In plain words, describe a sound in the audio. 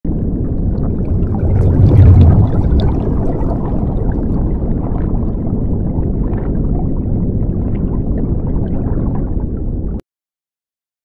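Bubbles rush and gurgle underwater.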